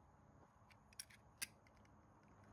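A utility knife clicks a few times.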